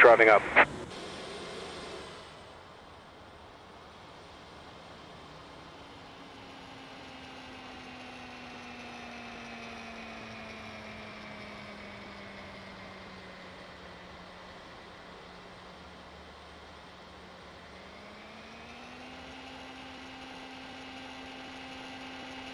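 Turboprop engines hum steadily, slowly dropping in pitch and then rising again.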